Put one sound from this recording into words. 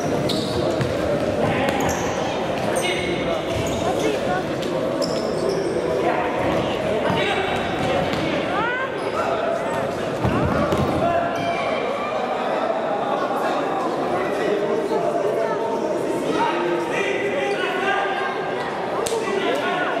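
A crowd of spectators chatters in an echoing indoor hall.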